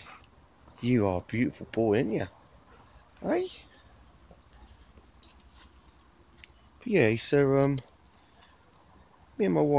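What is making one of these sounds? A dog howls and whines in short, wavering bursts close by.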